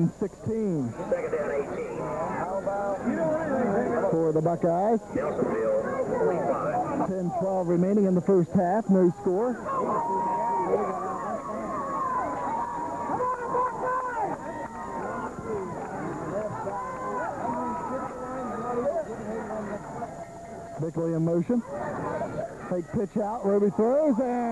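A large crowd of spectators cheers and chatters outdoors.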